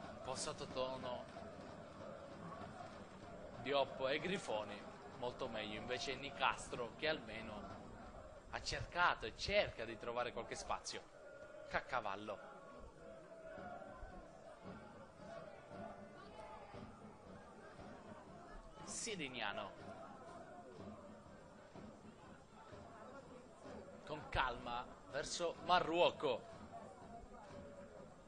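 A stadium crowd murmurs and chants in the distance, outdoors.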